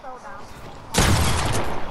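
A gun fires loudly in a rapid burst.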